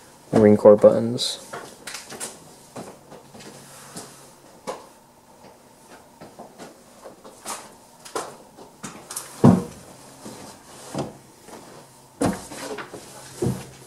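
Fingers rub and rustle against stiff cotton cloth.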